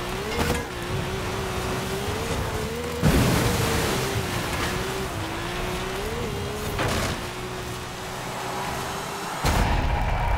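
A car engine drones steadily as it races over rough ground.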